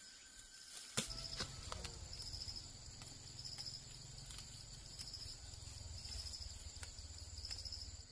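Fern fronds rustle softly as fingers pluck at them.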